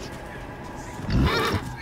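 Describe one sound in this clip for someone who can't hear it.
A horse snorts loudly close by.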